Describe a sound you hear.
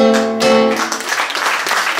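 A guitar chord rings out and fades.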